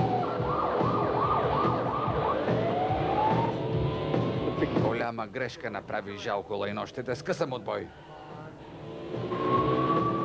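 A police siren wails and yelps nearby.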